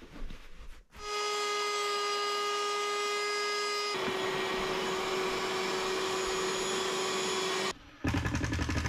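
A cordless drill whirs steadily as it drives screws.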